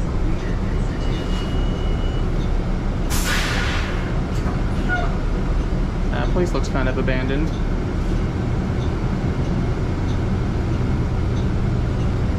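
A bus engine rumbles and idles steadily.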